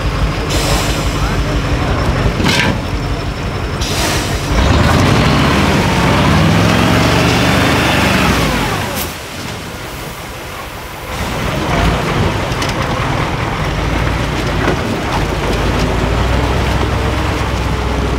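A truck's diesel engine roars and revs hard up close.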